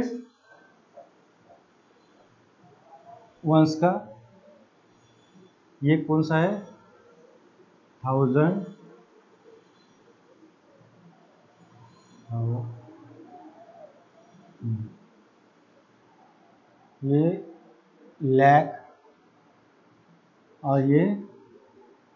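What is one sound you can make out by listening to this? A man speaks calmly in short phrases with pauses, close by.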